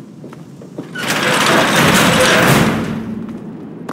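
A heavy metal door grinds open.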